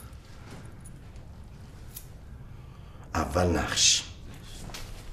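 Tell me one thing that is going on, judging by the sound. A younger man answers, talking with animation.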